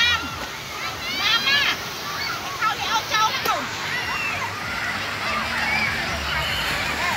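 Children shout and squeal with excitement nearby.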